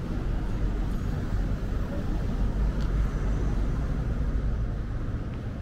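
City traffic rumbles steadily nearby, outdoors.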